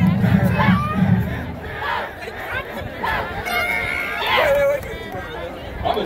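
A young woman shouts through a megaphone.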